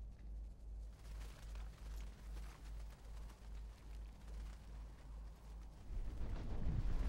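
A flock of birds flutters its wings.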